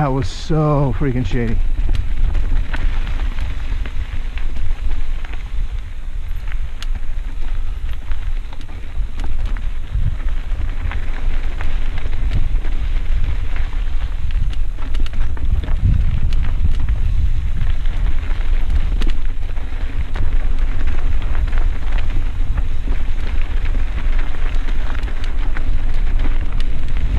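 Mountain bike tyres roll and crunch over a dirt singletrack.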